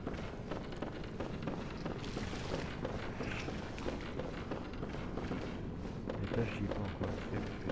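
Footsteps run quickly across a stone floor.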